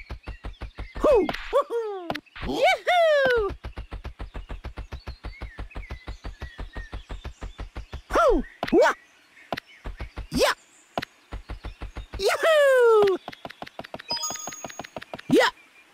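Springy cartoon jump sounds whoop, gliding downward in pitch.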